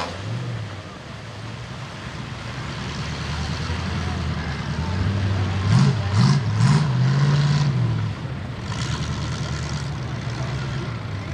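An engine revs hard as a vehicle churns through deep mud.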